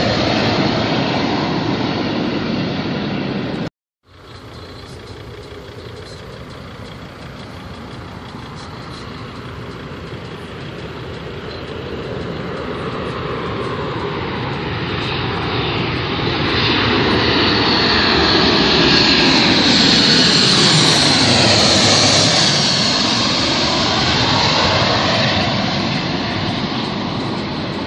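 A twin-engine jet airliner roars low overhead on its landing approach, and its whine drops in pitch as it passes.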